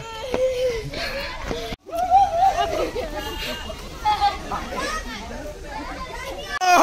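Children shout and call out excitedly nearby, outdoors.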